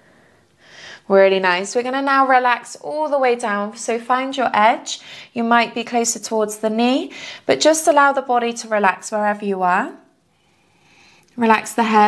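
A young woman speaks calmly and clearly through a close microphone.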